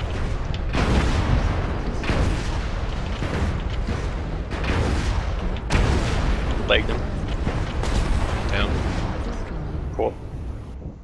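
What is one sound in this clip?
Explosions boom and crackle in bursts.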